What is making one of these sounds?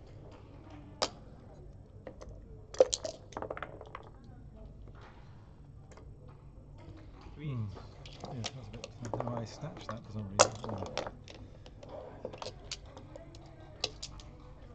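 Plastic checkers click and slide against each other on a board.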